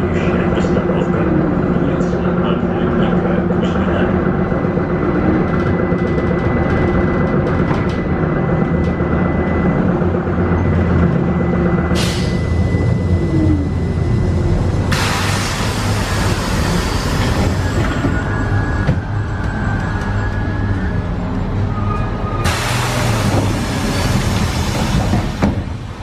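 A bus engine rumbles steadily from inside the vehicle as it drives.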